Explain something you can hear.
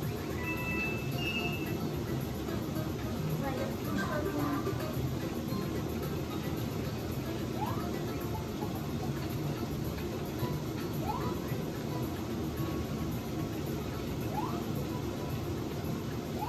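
Lively video game music plays from a television loudspeaker.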